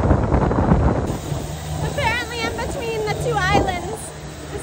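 A young woman shrieks and laughs excitedly close by.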